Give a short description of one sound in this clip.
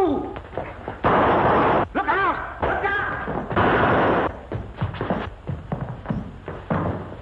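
Men scuffle, with heavy blows and thuds.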